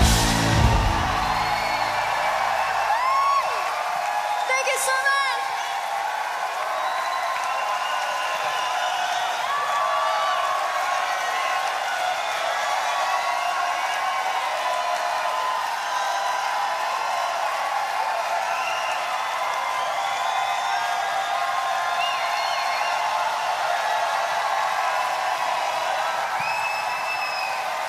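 A large crowd cheers and screams loudly in a big hall.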